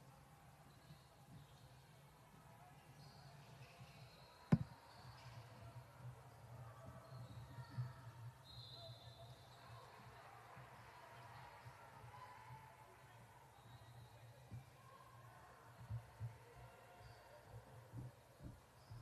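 Young women shout to each other during play.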